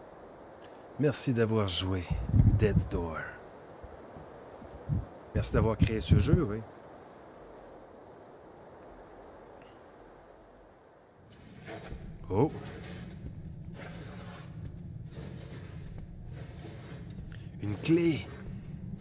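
A man speaks with animation into a close microphone.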